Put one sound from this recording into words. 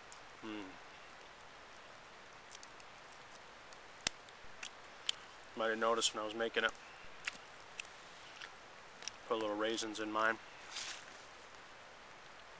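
A small campfire crackles and pops softly.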